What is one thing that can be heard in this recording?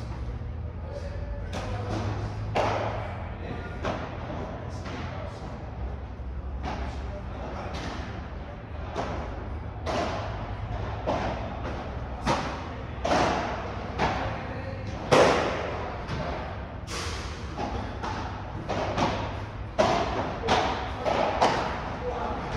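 Padel balls pop off rackets in a rally, echoing in a large hall.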